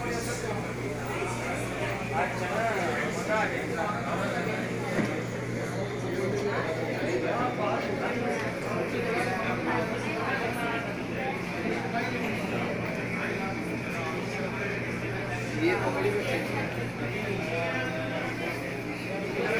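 A crowd of men and women chatters throughout a room.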